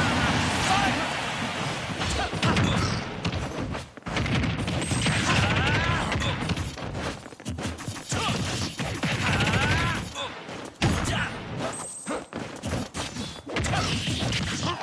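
Fast-paced music plays.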